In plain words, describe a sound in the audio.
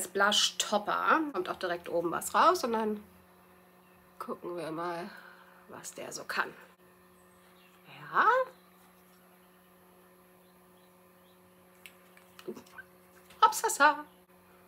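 A woman talks calmly and close by, in short bursts with pauses.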